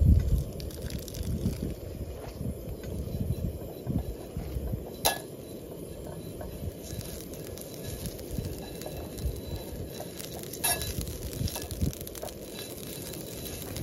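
Butter sizzles softly in a hot pan.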